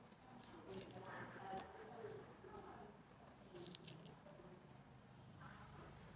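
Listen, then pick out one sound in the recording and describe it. A fruit rind tears softly as fingers peel it open.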